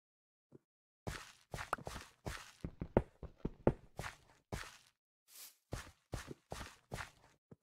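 A pickaxe chips and cracks at stone blocks with quick, sharp knocks.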